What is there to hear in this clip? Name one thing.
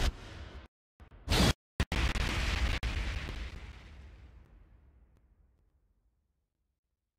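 A heavy boom slams in and slowly rings away.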